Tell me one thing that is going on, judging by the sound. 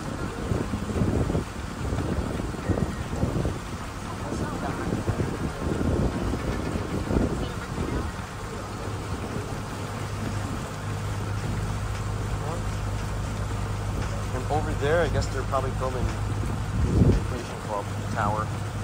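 Small waves lap gently across open water.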